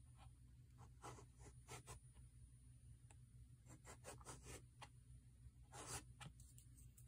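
A colored pencil scratches lightly across paper.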